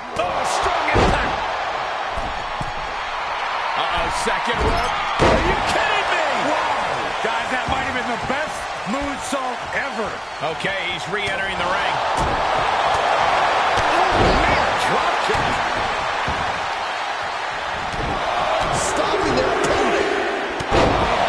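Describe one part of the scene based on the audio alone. Heavy thuds of bodies slamming onto a wrestling ring mat boom now and then.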